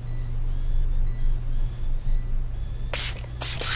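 A power screwdriver whirs.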